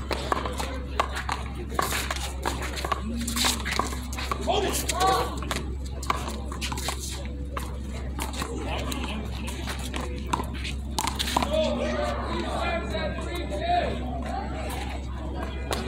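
A small rubber ball smacks sharply against a wall and the ground outdoors.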